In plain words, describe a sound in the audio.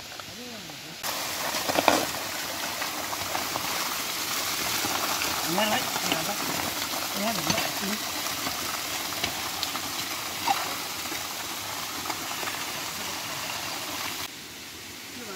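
Water gushes from a pipe and splashes onto mud.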